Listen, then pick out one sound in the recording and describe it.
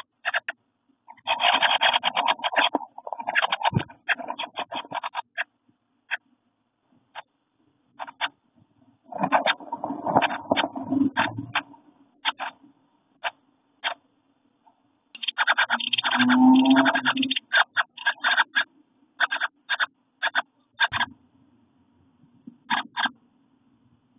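Baby birds cheep and chirp in rapid, shrill bursts up close.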